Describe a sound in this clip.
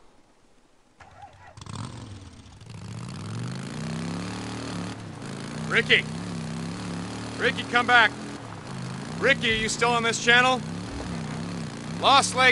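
A motorcycle engine runs and revs steadily.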